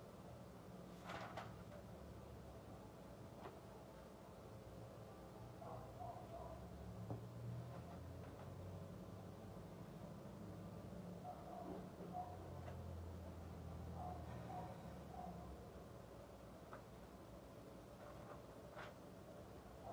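Magazine pages rustle and flip.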